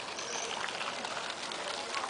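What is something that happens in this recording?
A small fountain splashes into a pool.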